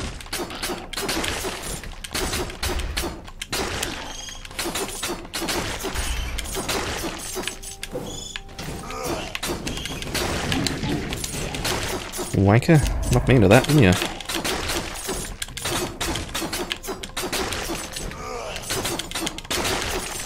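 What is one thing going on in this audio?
Game sword slashes and hits land in quick bursts.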